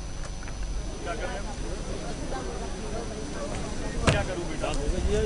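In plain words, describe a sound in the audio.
A crowd of people murmurs and talks in the background.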